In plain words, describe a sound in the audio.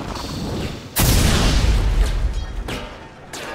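A loud magic blast booms.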